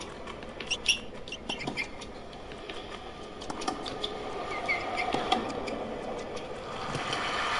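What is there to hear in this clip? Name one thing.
A tennis ball is struck sharply back and forth with rackets.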